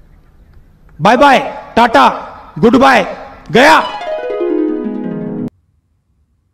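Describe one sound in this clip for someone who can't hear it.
A man gives a speech loudly through a microphone and loudspeakers.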